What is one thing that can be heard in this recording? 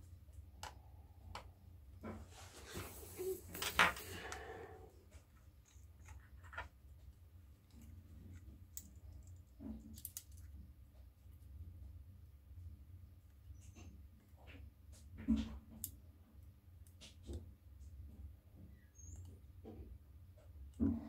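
Small metal tools click and tap against a phone.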